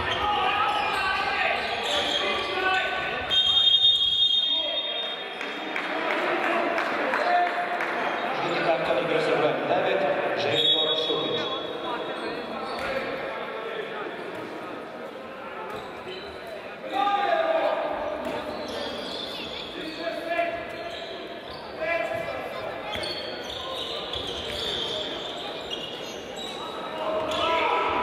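Players' shoes squeak on a wooden court.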